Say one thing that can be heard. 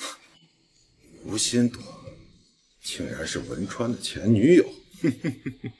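A man talks with amusement.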